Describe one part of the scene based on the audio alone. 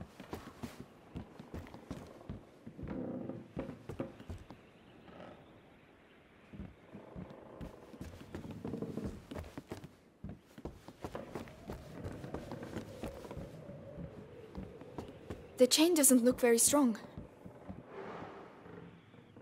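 Footsteps thud on wooden floorboards.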